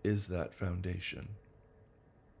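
A middle-aged man speaks briefly and calmly, close by.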